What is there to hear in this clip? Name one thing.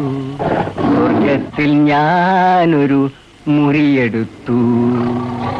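A man groans and cries out in distress.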